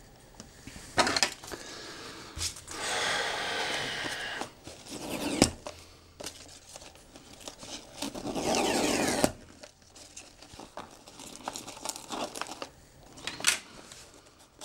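Small objects knock and clatter on a wooden table.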